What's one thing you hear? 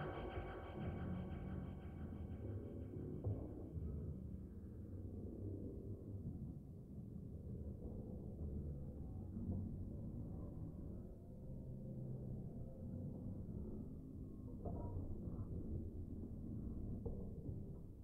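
Low electronic synthesizer tones play steadily.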